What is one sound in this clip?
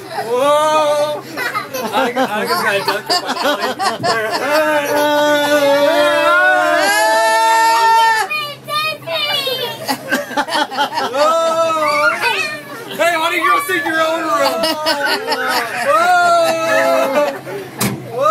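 Young children laugh and squeal loudly close by.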